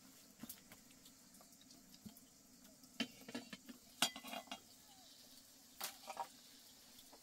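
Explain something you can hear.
Objects clink against a metal pot.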